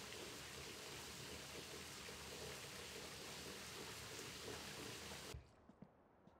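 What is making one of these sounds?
Water sprays steadily from a shower and then stops.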